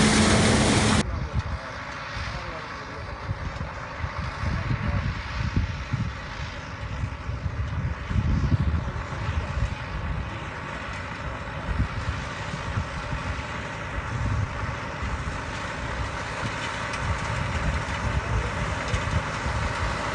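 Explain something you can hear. A tractor engine hums steadily in the distance.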